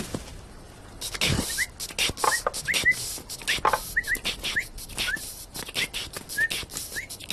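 Upbeat music with a thumping beat plays from a boombox.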